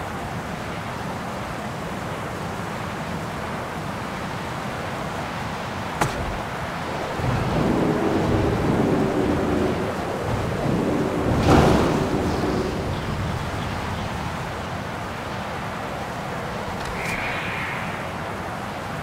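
Wind howls steadily.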